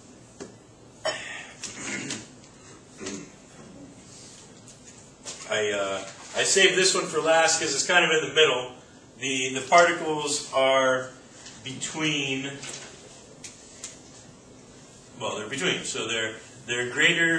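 A man speaks in a lecturing tone.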